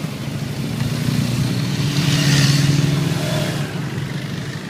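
A motorcycle engine roars loudly as it passes close by.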